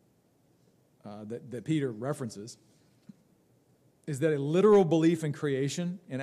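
A man reads aloud calmly into a microphone.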